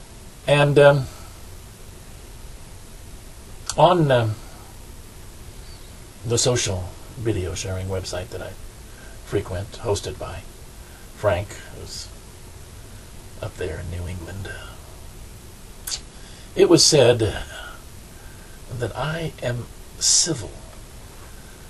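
An elderly man speaks slowly and calmly, close to a microphone, with long pauses.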